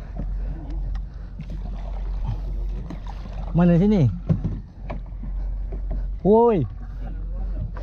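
A pole splashes and pushes through shallow water beside a boat.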